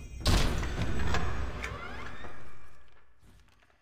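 A magic spell bursts with a loud crackling whoosh and fades away.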